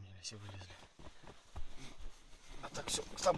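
Bedding rustles close by.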